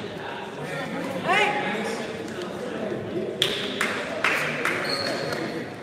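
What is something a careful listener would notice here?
Young players and spectators chatter and call out in a large echoing gym.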